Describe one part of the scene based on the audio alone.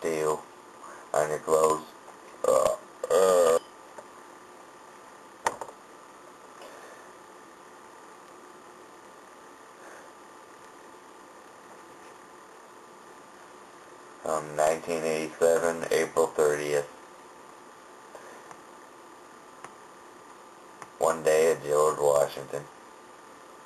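A young man speaks casually, close to a microphone, with pauses.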